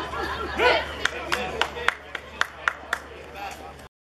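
Hands clap in a quick, steady rhythm.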